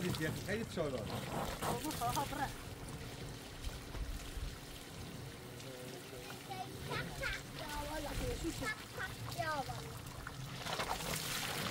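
Water pours from a hose into a plastic container.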